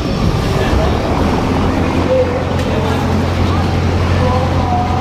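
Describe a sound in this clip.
A boat engine rumbles low nearby.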